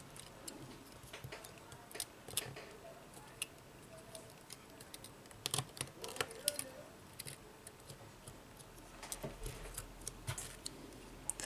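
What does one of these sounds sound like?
Fingers press and tap on a phone's circuit board with small clicks.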